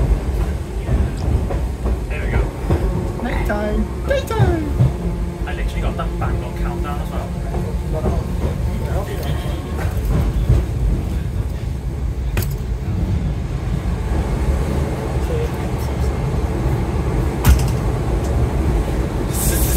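A train carriage rattles and creaks.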